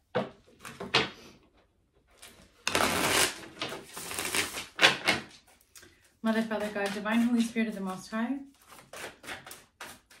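Cards shuffle and riffle in quick bursts.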